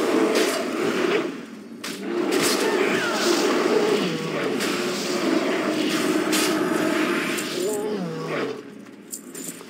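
Spell blasts and weapon strikes crash and whoosh in a fight.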